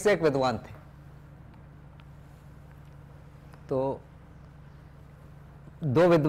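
An older man speaks calmly in short phrases, with long pauses.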